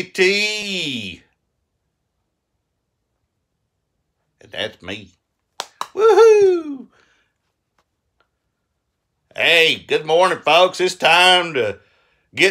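A middle-aged man speaks in a funny, animated puppet voice close by.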